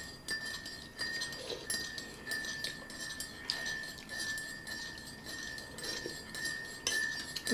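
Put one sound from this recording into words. A spoon scrapes and taps against a bowl.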